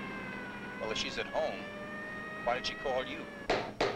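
A siren wails steadily.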